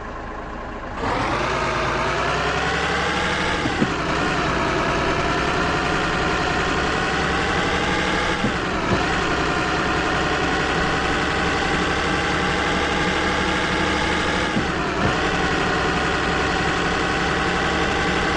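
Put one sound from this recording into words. A truck engine revs up loudly as the truck pulls away, its pitch rising and dropping with each gear change.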